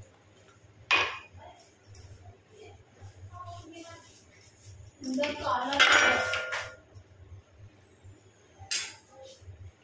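A metal spoon clinks against a steel bowl.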